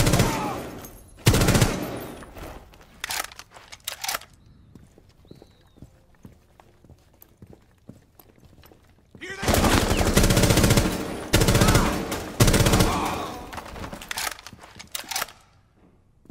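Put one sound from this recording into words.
Gunfire rings out in loud rapid bursts.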